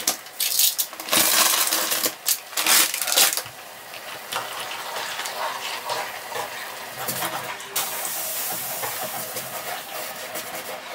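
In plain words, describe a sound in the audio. Sausages sizzle loudly in a hot frying pan.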